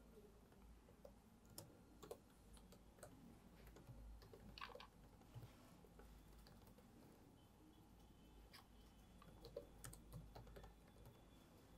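Laptop keys click softly.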